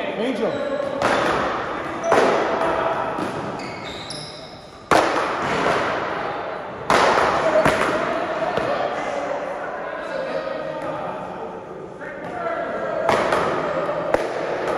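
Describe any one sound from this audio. Paddles strike a ball with sharp pops that echo off the walls.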